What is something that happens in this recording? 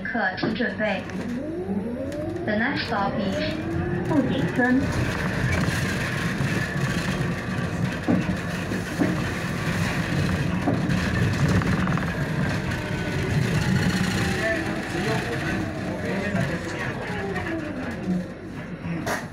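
A bus engine rumbles and whines as the bus drives along, then quiets as it slows to a stop.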